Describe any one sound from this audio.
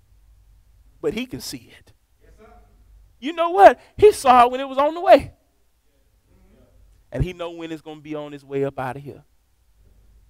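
A young man speaks with animation through a microphone, in short bursts with pauses.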